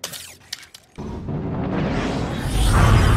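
A ship roars past with a loud rising whoosh.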